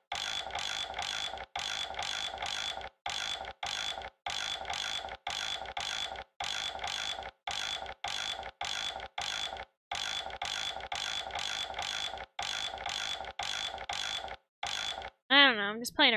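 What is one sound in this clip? A heavy dial turns with repeated grinding clicks.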